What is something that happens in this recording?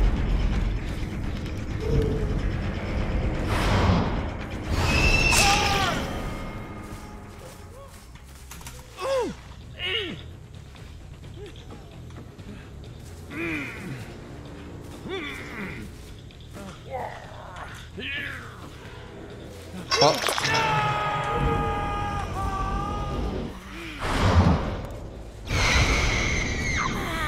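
A young man talks into a microphone with animation, close up.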